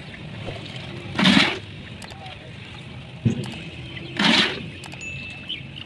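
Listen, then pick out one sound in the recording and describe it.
Wet concrete pours and splashes from a bucket into a mould.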